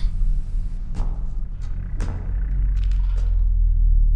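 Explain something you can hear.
Footsteps thud slowly down a staircase.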